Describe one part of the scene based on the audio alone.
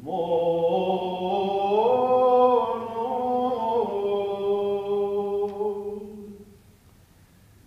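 A man chants a long, sustained melody in a large echoing hall, then the chant fades out.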